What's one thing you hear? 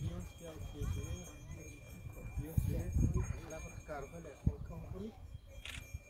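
Several men and women talk quietly nearby, outdoors.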